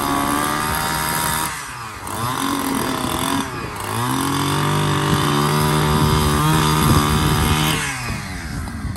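A chainsaw roars as it cuts through a log.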